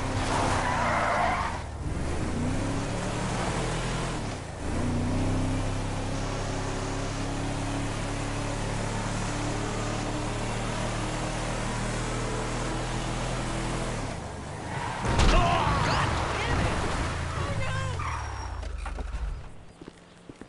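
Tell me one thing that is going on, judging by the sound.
A truck engine drones steadily and shifts up through its gears.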